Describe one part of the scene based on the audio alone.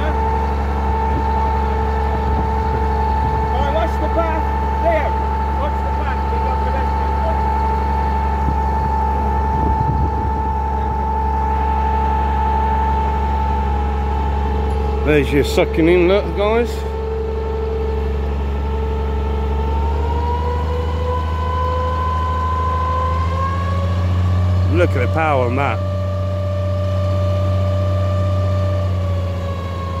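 A pump engine drones steadily close by, rising in pitch partway through.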